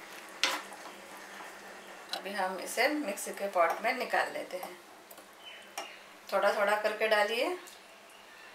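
A metal spoon scrapes and clinks against a pan.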